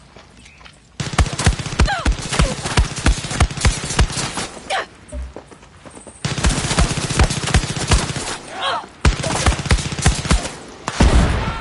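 Quick footsteps run over hard ground in short bursts.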